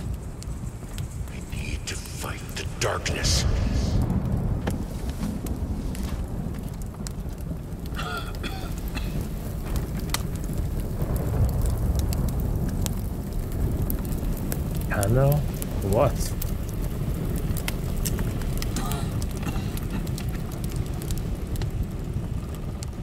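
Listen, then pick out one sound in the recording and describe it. A young man talks calmly into a close microphone.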